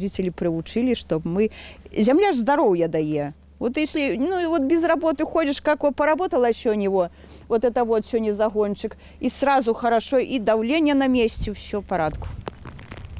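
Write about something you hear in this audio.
A middle-aged woman speaks with animation close by.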